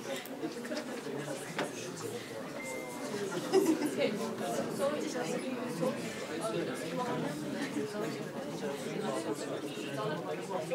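Many young people chatter in a room with some echo.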